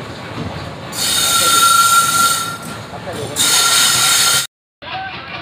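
A locomotive horn blares loudly.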